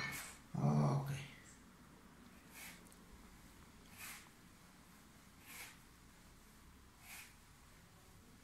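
Dough thumps softly on a wooden board as it is kneaded.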